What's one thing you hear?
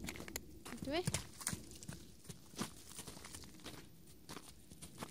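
Hooves thud on snowy, muddy ground as a horse trots.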